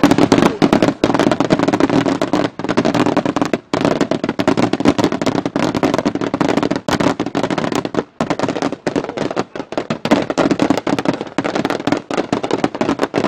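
Firecrackers crackle and bang in a rapid, continuous volley outdoors.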